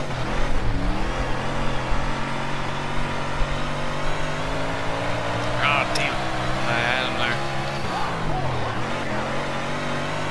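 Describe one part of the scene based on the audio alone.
Tyres skid and slide on loose dirt.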